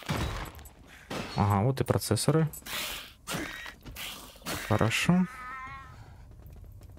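Blows and weapon hits clash in a fight.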